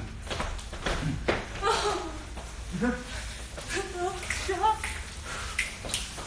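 Shoes squeak and thud on a hard floor.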